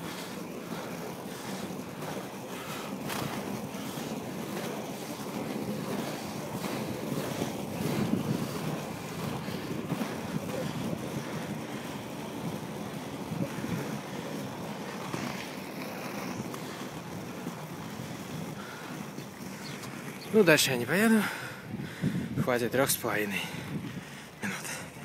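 Inline skate wheels roll and rumble on asphalt.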